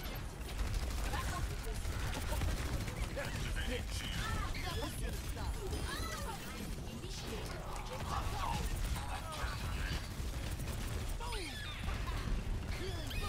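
Rapid game weapon shots fire in bursts.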